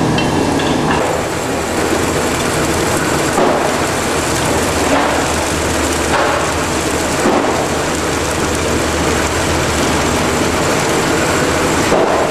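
A noodle machine runs with a steady mechanical whir.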